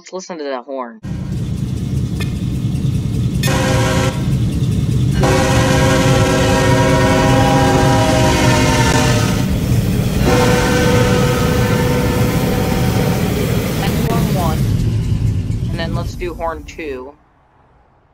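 A diesel train rumbles loudly past.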